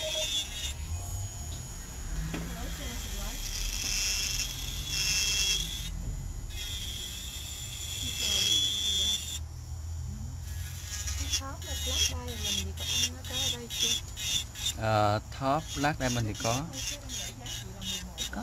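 A small metal tool scrapes against a fingernail.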